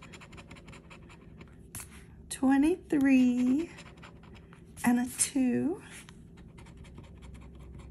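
A coin scratches across a card.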